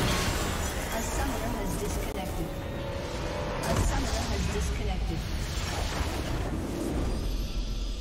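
Game sound effects of spells and fighting crackle and boom.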